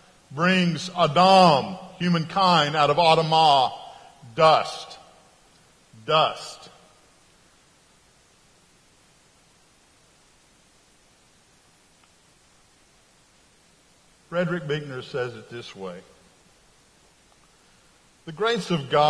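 A middle-aged man speaks with animation into a microphone, with pauses, in a large echoing hall.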